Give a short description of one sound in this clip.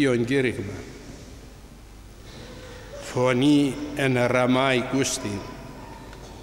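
An elderly man speaks calmly into a microphone, with pauses, in an echoing hall.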